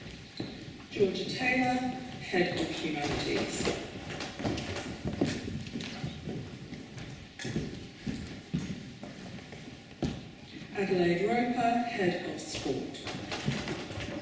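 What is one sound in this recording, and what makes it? A woman reads out names over a loudspeaker in a large echoing hall.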